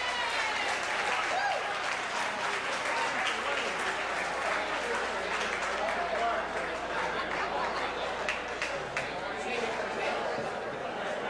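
A crowd chatters in a busy room.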